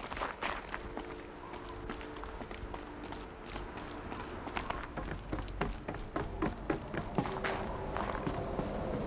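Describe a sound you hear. Footsteps crunch on snow and ice.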